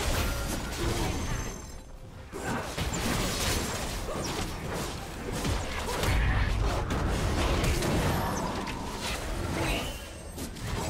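Game spell effects crackle, whoosh and burst in a busy fight.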